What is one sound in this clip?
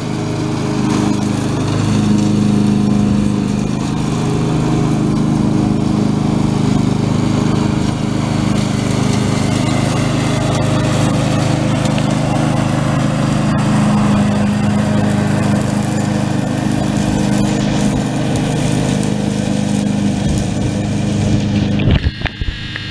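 Mower blades cut through grass.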